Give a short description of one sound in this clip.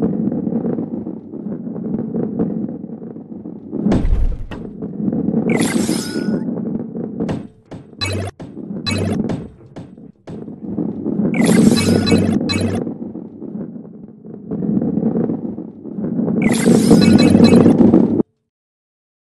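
A heavy ball rolls along a wooden track with a low rumble.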